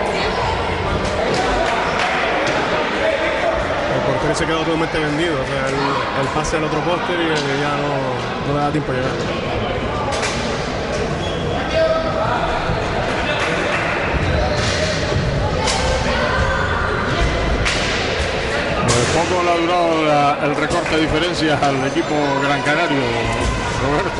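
Hockey sticks clack against a ball and against each other.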